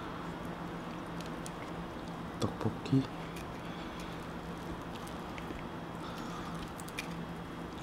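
Sticky sauced chicken pieces squelch as gloved fingers pick them up.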